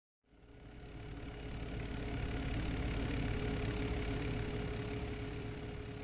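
A ceiling fan hums steadily.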